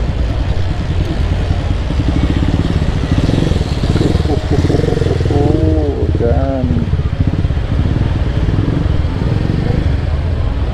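Motorcycle engines idle and rumble close by.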